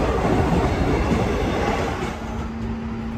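A subway train rumbles past on rails.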